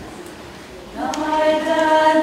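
A choir of young girls begins singing together in harmony in a resonant hall.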